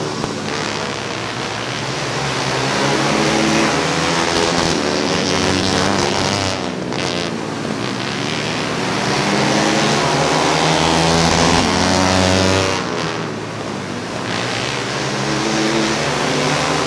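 Racing engines roar and whine loudly, rising and falling as they pass.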